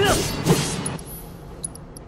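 Metal clangs and sparks crackle in a fight.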